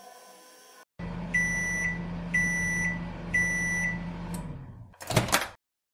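A toy microwave hums steadily while running.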